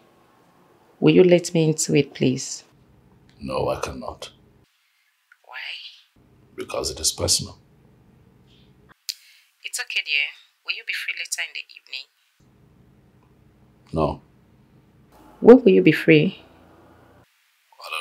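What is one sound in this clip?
A woman speaks on a phone, close by, with animation.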